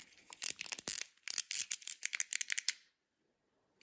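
Plastic buttons on a fidget toy click rapidly.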